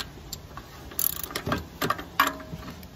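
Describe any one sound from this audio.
A ratchet wrench clicks rapidly.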